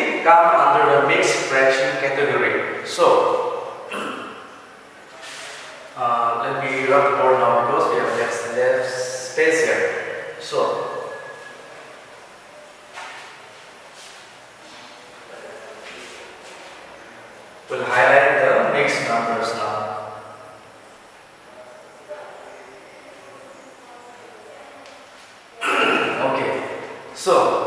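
A young man speaks calmly, explaining.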